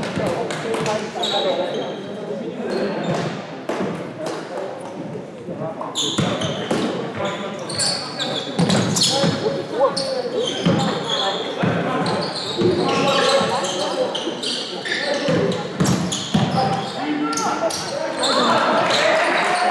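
Sneakers squeak on the court.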